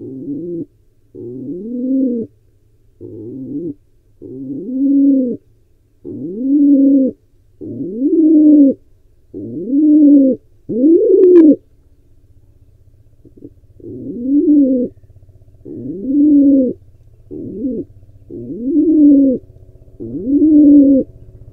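A pigeon coos in low, repeated calls close by.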